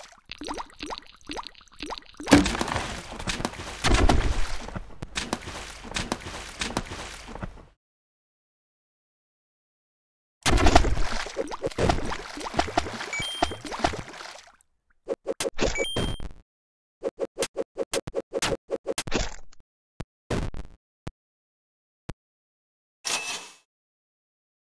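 Electronic game sound effects clash and beep in short bursts.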